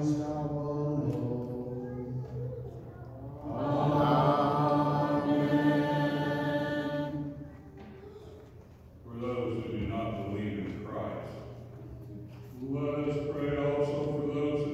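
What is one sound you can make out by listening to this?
A choir of men sings a slow chant, echoing in a large hall.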